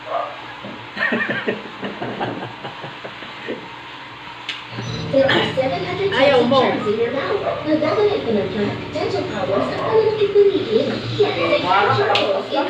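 A man talks and laughs nearby.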